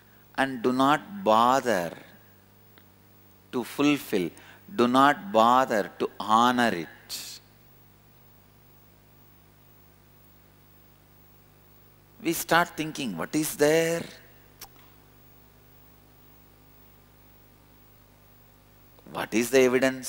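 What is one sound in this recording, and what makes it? A man speaks calmly and with animation into a close microphone, pausing between phrases.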